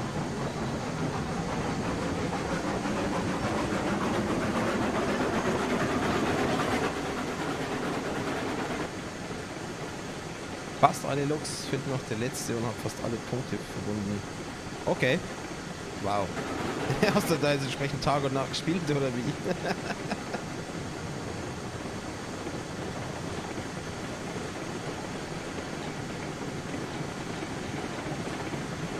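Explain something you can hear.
A small steam locomotive rumbles steadily along the rails.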